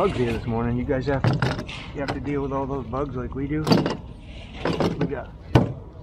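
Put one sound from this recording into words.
A plastic case's latches click open and shut.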